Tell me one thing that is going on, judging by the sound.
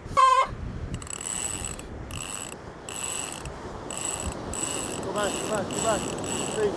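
A fishing reel clicks steadily as line runs out.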